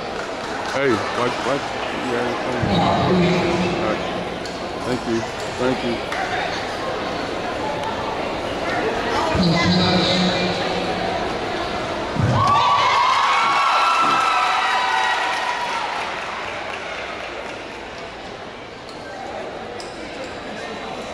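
A crowd of young people cheers and shouts in a large echoing hall.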